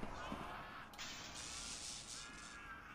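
A heavy metal door slides open.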